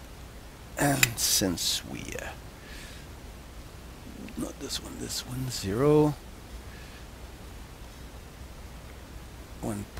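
A metal cylinder scrapes softly as it turns on a metal plate.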